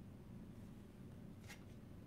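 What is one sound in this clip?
A playing card is set down softly on a wooden table.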